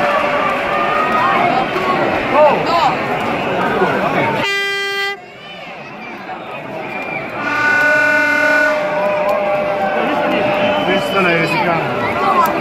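A crowd whistles shrilly.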